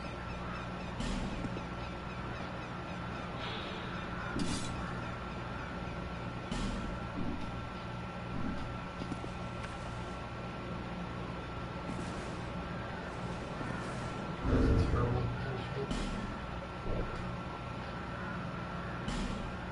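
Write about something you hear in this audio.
Soft menu clicks sound now and then.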